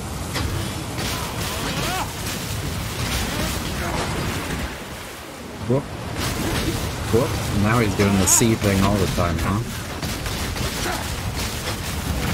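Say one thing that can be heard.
Magical energy bursts whoosh and crackle again and again.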